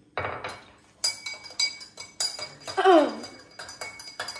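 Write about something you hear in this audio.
A spoon clinks against a glass as it stirs.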